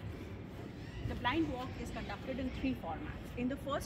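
A woman talks with animation close by, outdoors.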